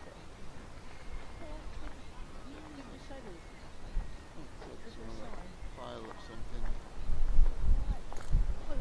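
Gentle waves lap against a rocky shore.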